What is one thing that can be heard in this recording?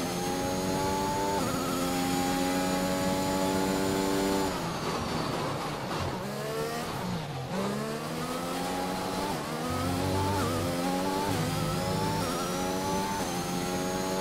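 A racing car engine screams at high revs, dropping in pitch as it brakes and rising again as it speeds up through the gears.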